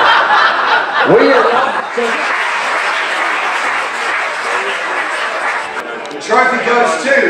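A crowd of diners chatters and murmurs in a large room.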